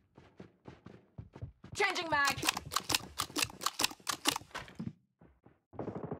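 A rifle is reloaded with quick metallic clicks.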